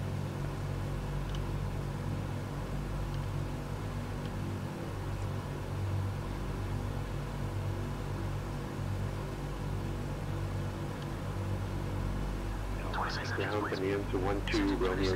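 Aircraft engines drone steadily in a low, even hum.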